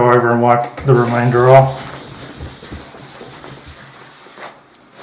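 A cloth rubs briskly over leather.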